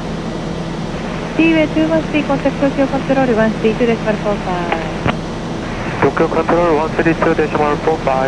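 An aircraft engine drones steadily inside a small cabin.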